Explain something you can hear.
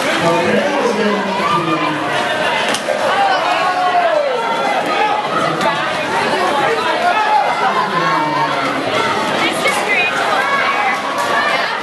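A crowd cheers and shouts in a large echoing hall.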